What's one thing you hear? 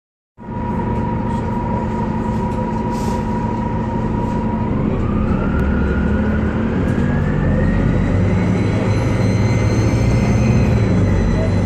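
A bus engine rumbles loudly close by.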